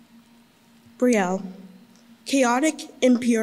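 A young girl reads out loud through a microphone.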